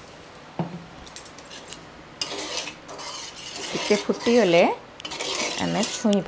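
A spatula stirs and scrapes in a metal pot.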